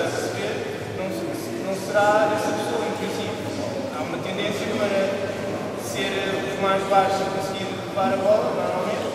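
A man speaks loudly to a group in a large echoing hall.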